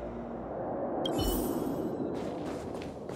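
A burst of magic whooshes and shimmers.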